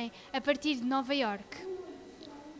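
A young girl speaks with animation into a microphone.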